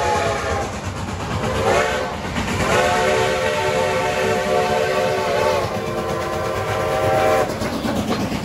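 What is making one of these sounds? A steam locomotive whistle blows in long, loud blasts.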